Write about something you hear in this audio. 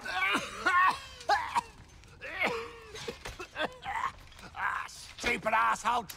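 A man coughs harshly.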